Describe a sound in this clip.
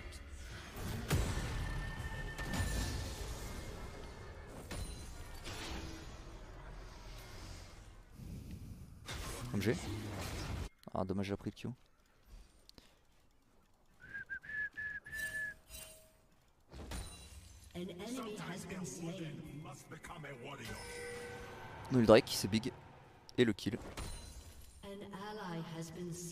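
Game sound effects ring out in quick bursts.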